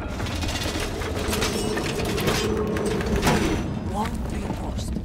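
Metal reinforcement panels clank and whir as mechanical struts extend across a wall.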